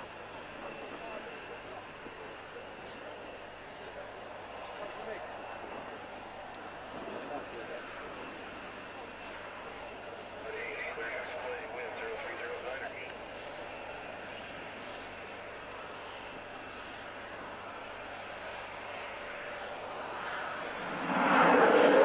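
A twin-engine jet fighter whines as it idles on the runway.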